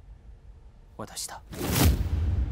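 A man speaks briefly in a low, stern voice, close by.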